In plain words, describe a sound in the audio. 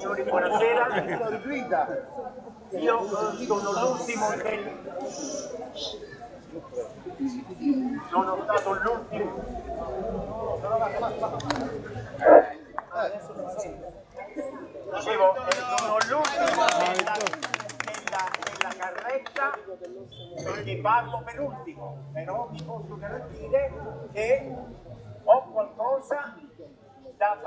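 An elderly man speaks loudly through a megaphone outdoors.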